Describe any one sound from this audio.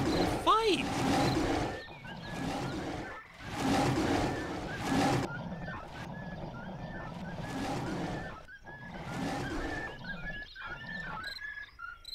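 Wolves snarl and growl as they fight.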